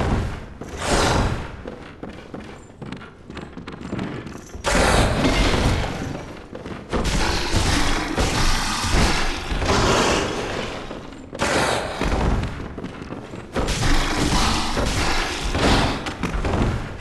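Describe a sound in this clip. A blade slashes and strikes flesh again and again.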